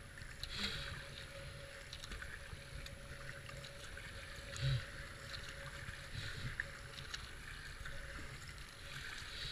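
A paddle splashes into the water in regular strokes.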